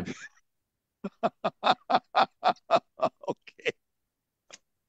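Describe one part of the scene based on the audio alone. A middle-aged man laughs heartily over an online call.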